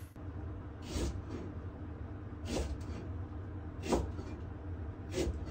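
A utensil scrapes against a pot in regular strokes.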